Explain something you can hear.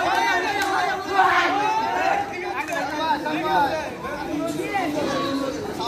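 Several young men shout and call out excitedly outdoors.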